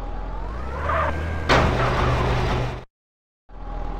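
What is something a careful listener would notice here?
A car engine idles and revs.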